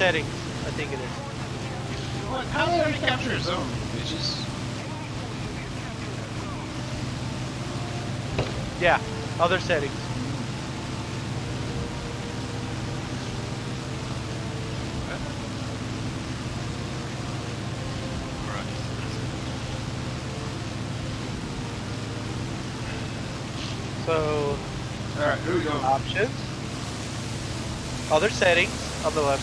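A propeller plane engine drones steadily.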